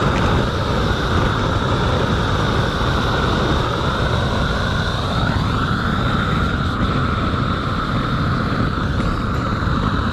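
A gas torch roars steadily close by.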